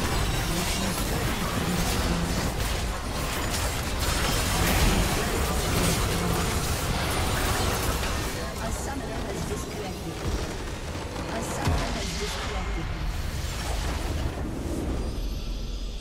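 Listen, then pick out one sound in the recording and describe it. Game spell effects blast and crackle in a busy fight.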